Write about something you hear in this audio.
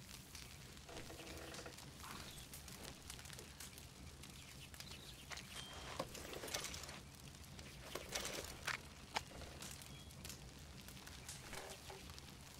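A campfire crackles and pops steadily nearby.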